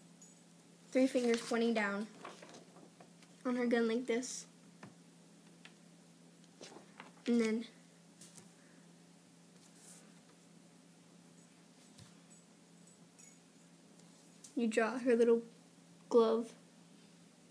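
A young girl speaks softly and close by, in short bursts.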